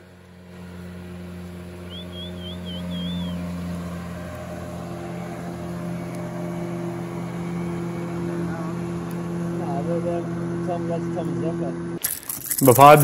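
An outboard motor drones steadily across the water.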